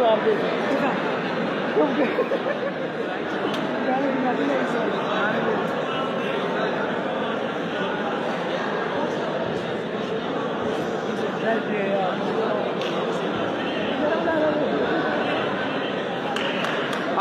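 A crowd chatters and shouts throughout a large echoing hall.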